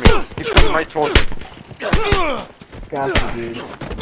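Heavy blows land in a close scuffle.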